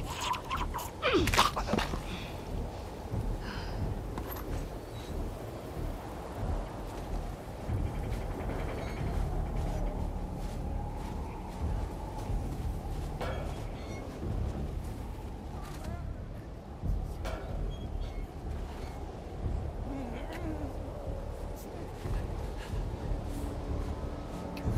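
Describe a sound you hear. A strong wind howls through a snowstorm.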